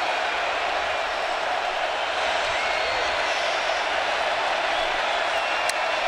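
A large stadium crowd roars steadily outdoors.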